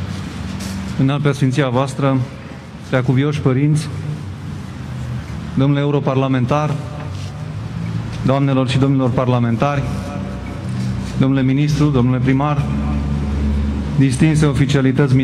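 A young man speaks slowly and formally into a microphone, heard through loudspeakers outdoors.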